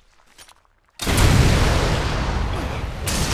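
A rocket launcher fires with a loud boom.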